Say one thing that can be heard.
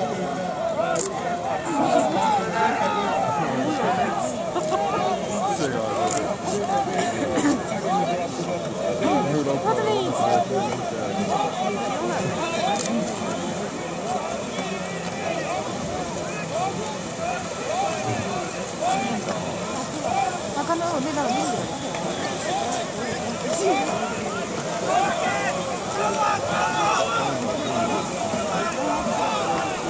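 A large crowd of men and women chatters and calls out outdoors.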